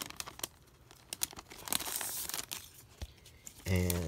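A plastic sleeve crinkles as hands handle it.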